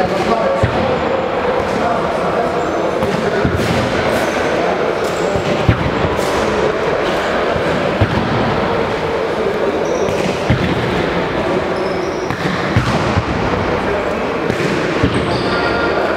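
A ball thumps on a hard floor now and then.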